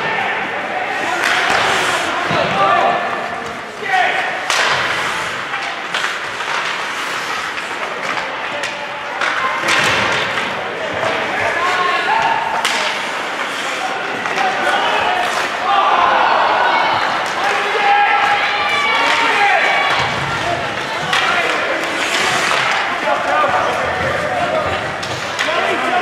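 A crowd of spectators shouts and cheers in an echoing rink.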